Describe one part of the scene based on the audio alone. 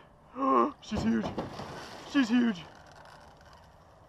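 A fish thrashes and splashes at the water's surface.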